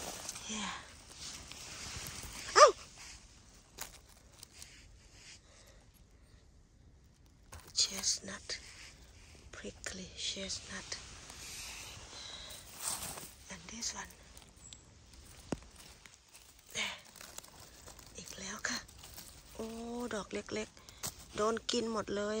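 Dry leaves and pine needles rustle under a hand.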